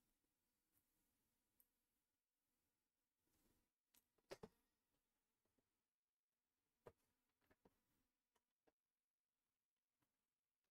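A computer mouse clicks sharply now and then.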